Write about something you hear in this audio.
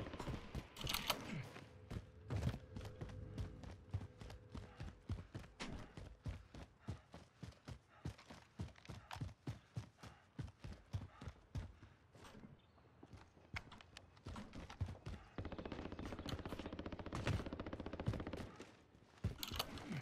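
Footsteps run quickly over hard ground.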